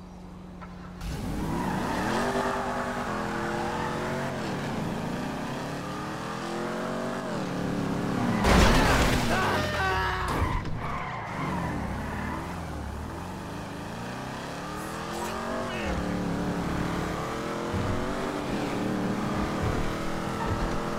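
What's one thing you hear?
A car engine starts and revs up and down as the car speeds along.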